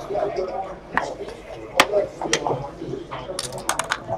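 Plastic game pieces click against a board as they are moved.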